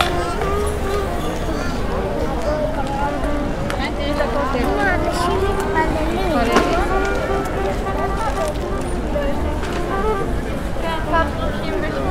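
A crowd of people chatters in the open air all around.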